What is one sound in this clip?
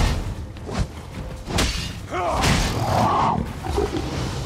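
A crocodile hisses and growls.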